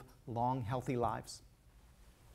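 A middle-aged man speaks with animation through a microphone in a large hall.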